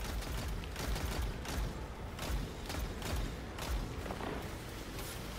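Gunshots fire in quick bursts in a video game, with low booming thuds.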